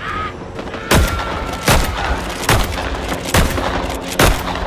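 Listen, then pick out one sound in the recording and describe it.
A shotgun fires several loud shots.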